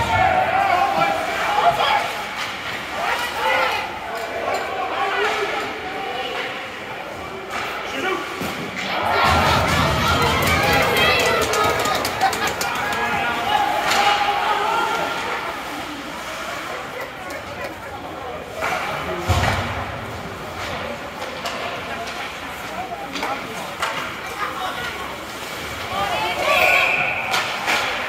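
Spectators chatter and call out in an echoing rink.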